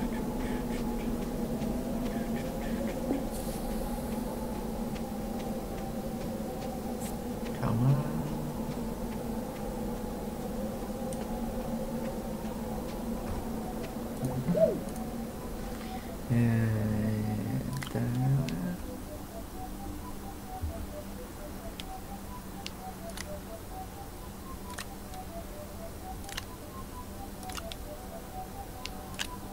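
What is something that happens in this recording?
Light footsteps patter steadily on the ground.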